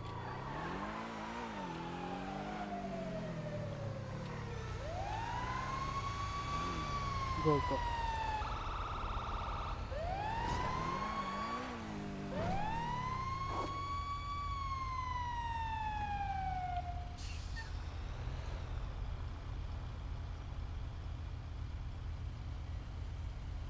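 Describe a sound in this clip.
A sports car engine revs and roars.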